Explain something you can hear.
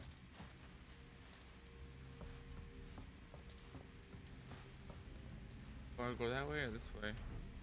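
A flare hisses and crackles as it burns.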